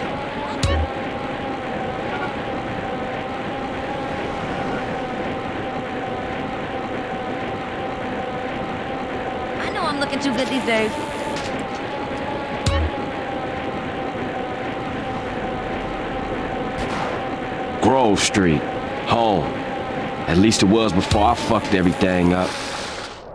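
A BMX bicycle is pedalled along an asphalt road.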